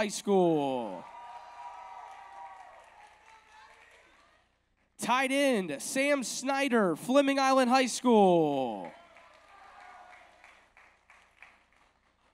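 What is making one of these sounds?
An audience applauds and cheers in a large echoing hall.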